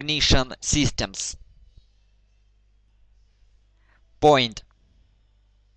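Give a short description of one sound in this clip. A young man speaks calmly into a close headset microphone.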